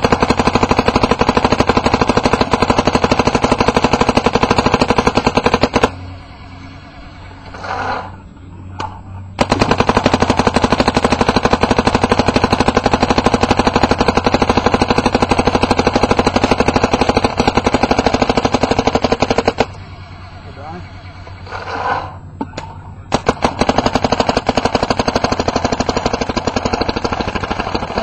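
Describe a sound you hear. An electronic paintball marker fires in rapid bursts outdoors.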